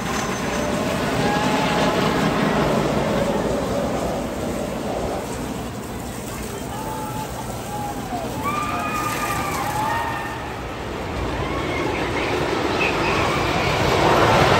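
Riders scream and shout from a roller coaster.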